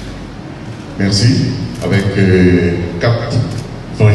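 A man speaks formally through a loudspeaker in an echoing hall.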